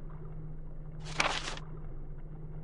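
A page turns with a short paper swish.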